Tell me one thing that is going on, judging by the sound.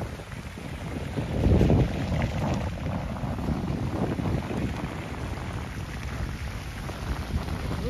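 Fountains splash steadily into a pond.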